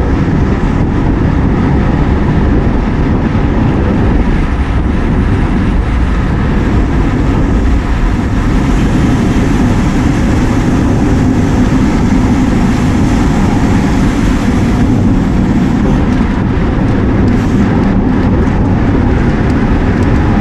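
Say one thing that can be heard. Wind rushes loudly past, as if heard while riding fast outdoors.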